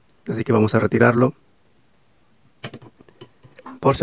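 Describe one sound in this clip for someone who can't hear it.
A battery clicks as it is unclipped from its contacts.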